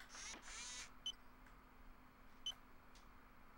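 A short electronic beep sounds twice, evenly spaced.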